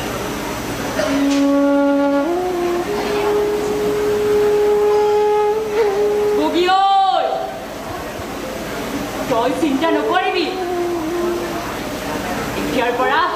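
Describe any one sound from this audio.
A man vocalizes long, drawn-out notes.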